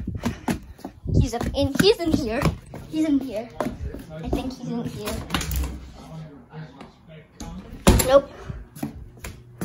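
Footsteps thud on a wooden floor and stairs.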